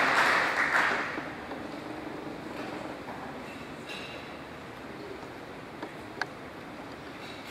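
A crowd of people murmurs and chats quietly.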